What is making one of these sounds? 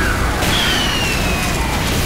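Explosions burst nearby.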